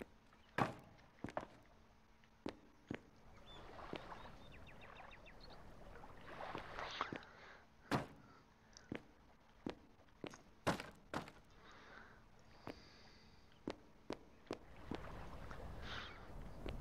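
A pickaxe strikes rock with sharp, repeated knocks.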